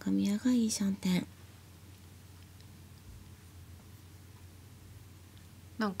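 Mahjong tiles click softly on a table.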